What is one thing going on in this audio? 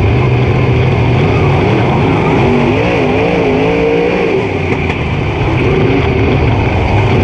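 A race car engine roars loudly up close, its pitch rising and falling.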